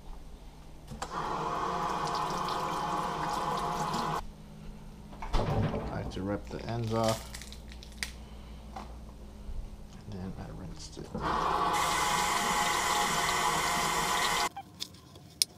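Water runs from a kitchen tap into a sink.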